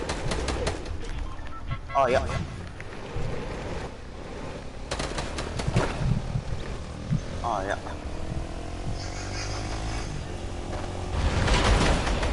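A game quad bike engine hums steadily.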